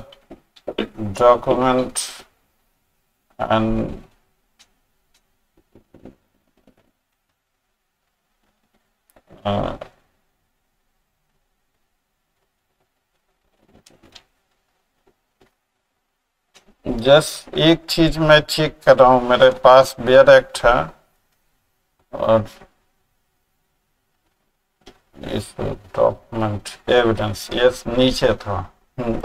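A middle-aged man speaks calmly into a microphone, in bursts with long pauses.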